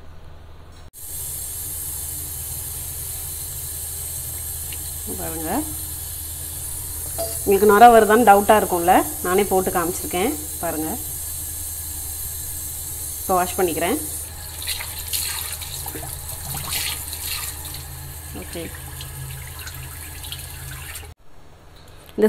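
Water runs steadily from a tap into a basin.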